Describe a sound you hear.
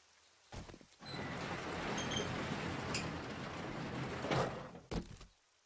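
A metal garage door rattles and rolls open.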